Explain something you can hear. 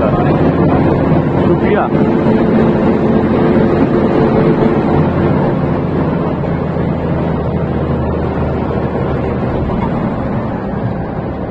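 A bus engine hums steadily as the bus drives along a road.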